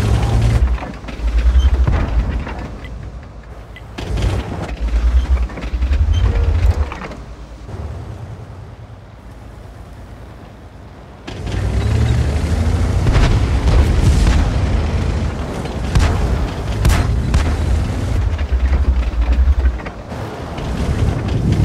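A tank engine rumbles low and heavy.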